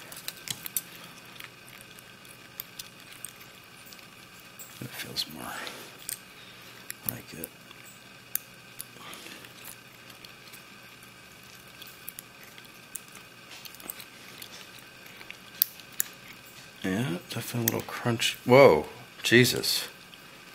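Metal tools click and scrape faintly inside a lock.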